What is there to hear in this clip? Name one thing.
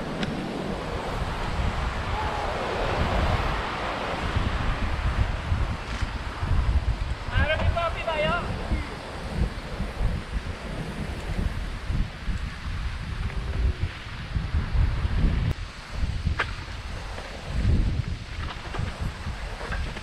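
Wind rushes and buffets loudly throughout.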